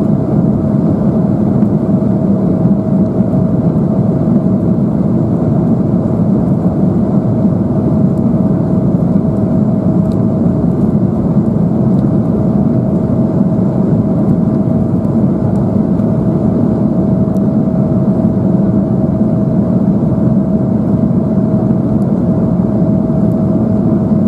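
Jet engines roar steadily inside an airliner cabin in flight, with a constant droning hum.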